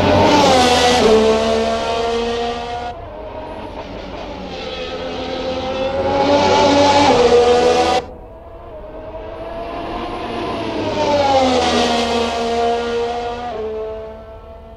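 A racing car engine drops in pitch as the driver shifts gears.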